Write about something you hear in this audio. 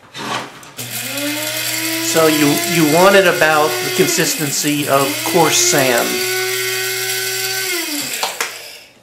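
A coffee machine hums steadily as it runs.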